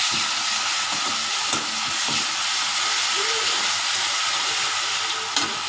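A spatula scrapes and knocks against a metal pan.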